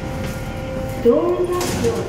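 A finger presses an elevator button with a click.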